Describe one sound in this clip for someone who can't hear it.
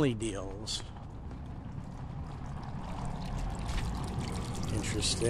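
Water trickles in a fountain.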